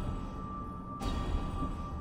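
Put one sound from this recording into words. A soft interface click sounds as a menu selection changes.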